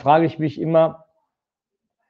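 A middle-aged man speaks into a microphone in a short burst.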